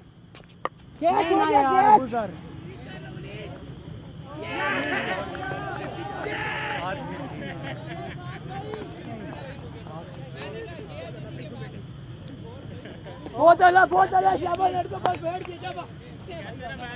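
Young men shout across an open field at a distance.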